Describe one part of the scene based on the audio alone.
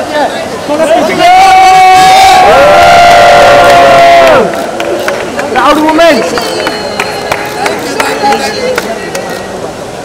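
A crowd of people chatters around.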